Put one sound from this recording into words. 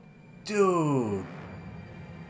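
A man exclaims loudly with a falling groan, close to a microphone.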